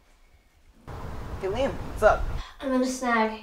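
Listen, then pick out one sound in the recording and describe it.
A boy speaks into a phone.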